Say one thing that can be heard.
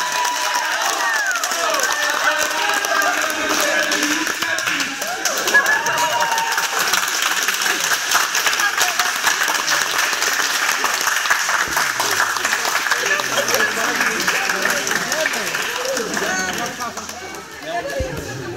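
A crowd of men and women cheer and shout.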